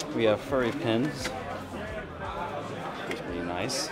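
Plastic pins rattle as a hand sifts through them in a box.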